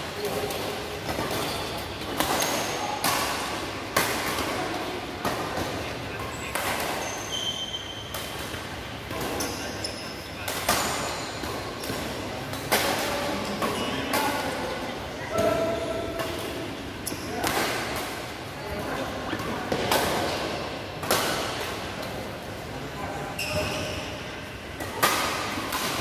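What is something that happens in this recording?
Badminton rackets strike a shuttlecock in quick rallies, echoing in a large hall.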